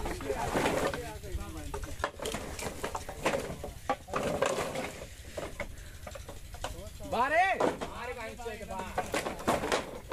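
Wooden poles knock and clatter as they are shifted.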